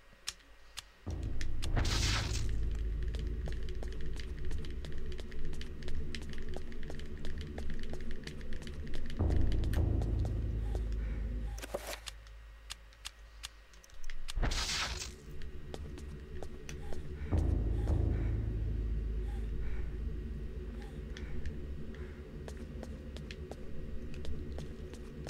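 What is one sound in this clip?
Game music plays steadily.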